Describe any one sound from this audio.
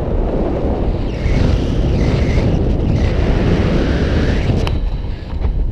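A boy talks loudly over the wind.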